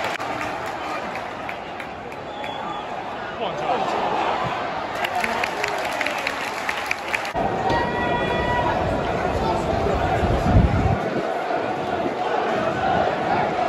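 A large stadium crowd roars and chants in the open air.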